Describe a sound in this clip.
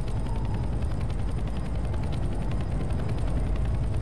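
A helicopter's rotor thumps nearby.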